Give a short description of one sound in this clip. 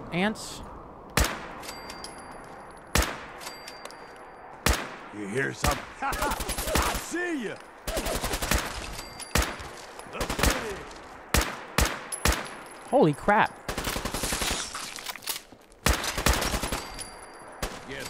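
Rifle shots fire in bursts, sharp and loud.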